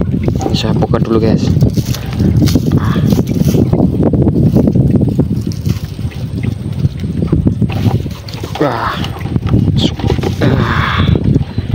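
Tiny shrimp patter and rustle into a plastic basin as a fishing net is shaken out.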